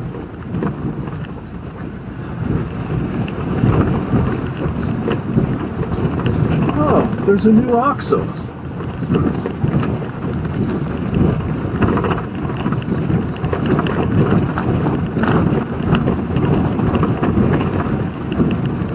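Tyres rumble and rattle over a cobbled street.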